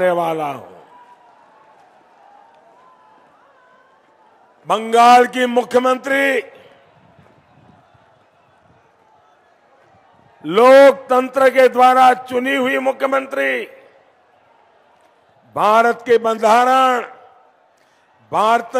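An elderly man gives a forceful speech through a microphone and loudspeakers, pausing between phrases.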